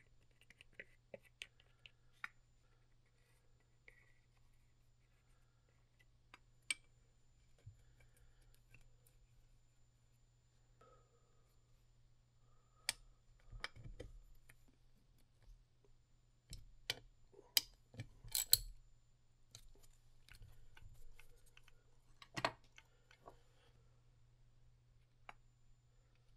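Small metal parts clink and tap against a metal engine case.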